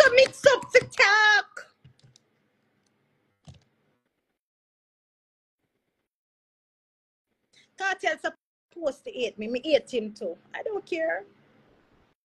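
A woman cries and wails.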